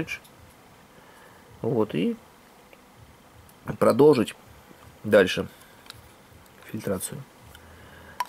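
Plastic parts click softly as they are handled.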